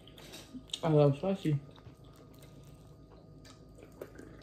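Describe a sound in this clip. A young woman chews food noisily.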